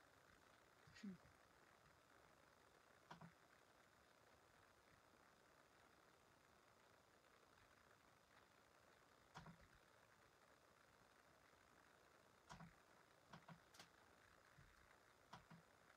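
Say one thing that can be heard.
Laptop keys click now and then.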